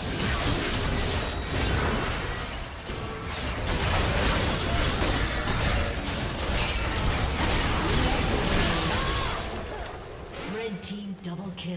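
Video game spell effects crackle and whoosh in a fast battle.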